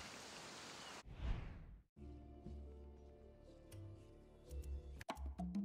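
Soft menu clicks tick.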